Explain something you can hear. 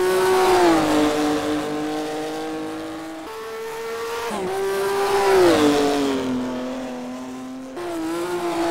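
A sports car engine roars, its pitch rising and dropping with each gear change.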